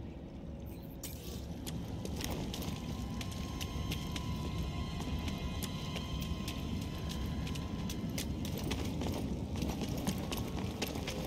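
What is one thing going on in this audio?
Footsteps run quickly over gritty ground.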